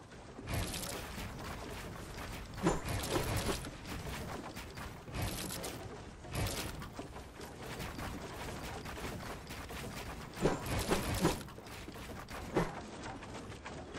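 Building pieces clatter rapidly into place.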